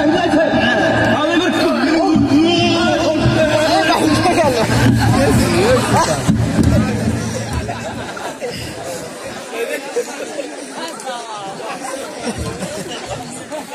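A man sings loudly through a loudspeaker.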